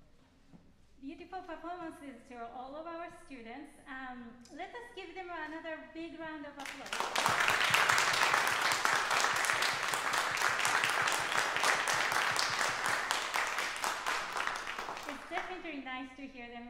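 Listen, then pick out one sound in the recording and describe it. A woman speaks calmly through a microphone in an echoing hall.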